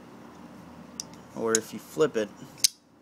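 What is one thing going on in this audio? A folding knife blade clicks as it snaps open.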